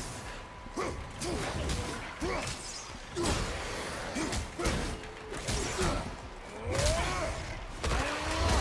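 A man grunts and shouts with effort.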